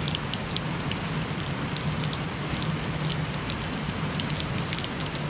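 Heavy rain pours steadily on leafy trees outdoors.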